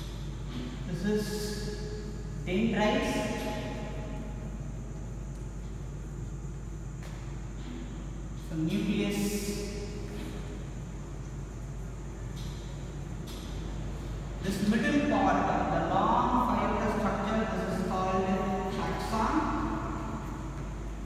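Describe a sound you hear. A man speaks calmly, as if teaching.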